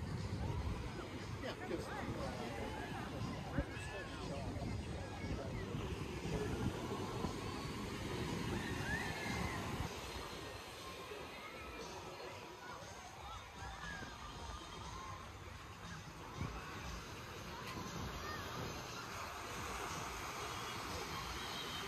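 Ocean waves wash softly onto the shore.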